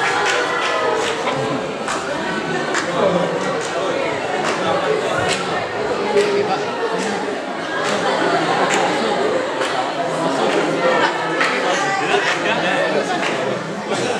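A group of young men talk and chant together close by.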